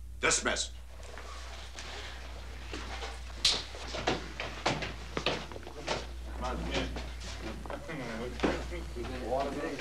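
Several men murmur and talk over each other.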